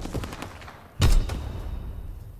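A single loud gunshot booms and echoes.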